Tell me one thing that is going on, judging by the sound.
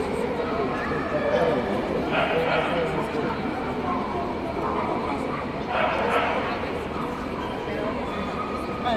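A crowd of spectators murmurs and chatters in a large echoing hall.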